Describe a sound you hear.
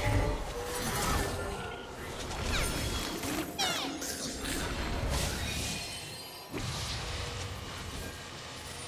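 Game sound effects of spells and hits play.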